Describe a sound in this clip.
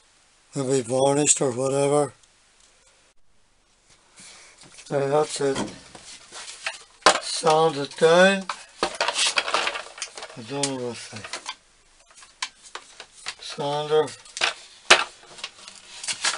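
A wooden stool knocks and scrapes as it is turned over and handled.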